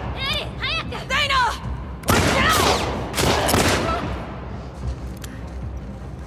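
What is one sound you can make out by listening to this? A pistol fires several loud shots that echo in a large hall.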